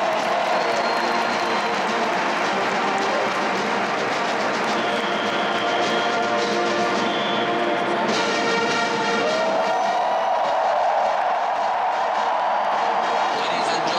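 A large marching band plays brass music loudly in a big echoing stadium.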